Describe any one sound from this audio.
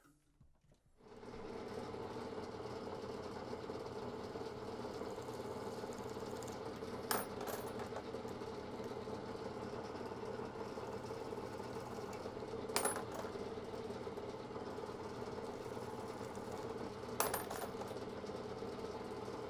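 A drill press whirs steadily.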